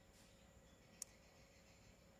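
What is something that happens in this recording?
A phone button clicks once.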